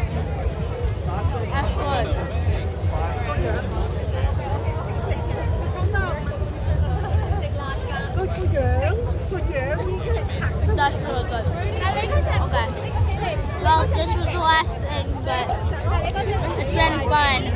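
A boy talks close by, with animation.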